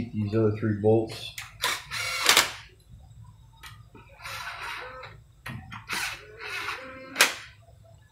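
A cordless drill whirs in short bursts.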